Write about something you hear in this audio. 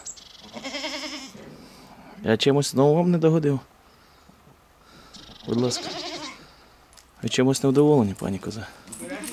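A goat bleats loudly and repeatedly nearby.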